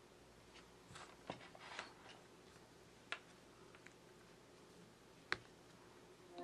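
A charging plug clicks into a phone.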